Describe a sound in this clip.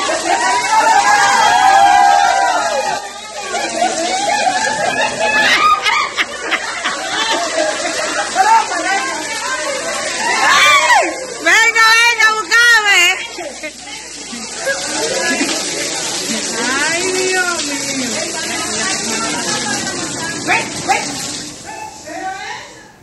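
Several women talk and exclaim loudly nearby.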